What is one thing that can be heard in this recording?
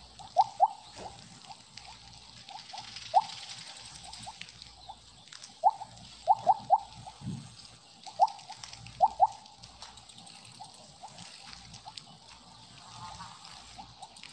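Short bright electronic blips pop now and then as a game snake eats pellets.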